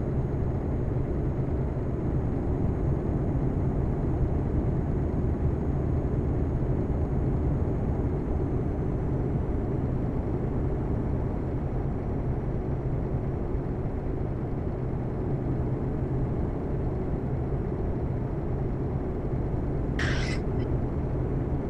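Tyres roll steadily on a road.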